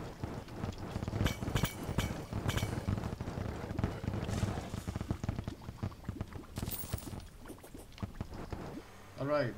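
Magic spells zap and crackle in quick bursts.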